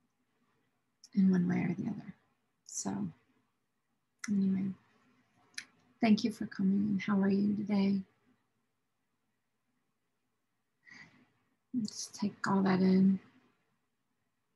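A middle-aged woman speaks calmly and warmly into a close microphone, in short phrases with pauses.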